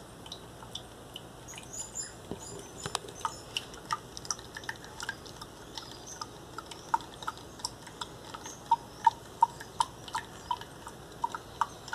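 A plastic strainer taps and clinks against a glass.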